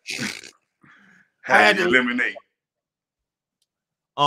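A man laughs over an online call.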